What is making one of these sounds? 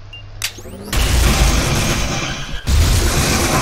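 A loud energy blast booms and roars.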